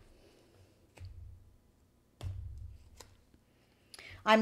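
Cards tap on a table.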